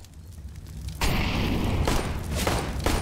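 Fire roars and crackles close by.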